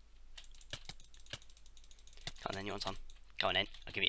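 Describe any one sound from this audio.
A sword strikes a player with quick hits.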